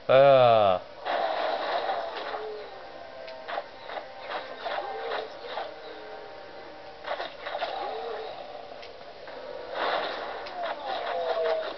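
Spell blasts and combat effects from a video game play through a television speaker.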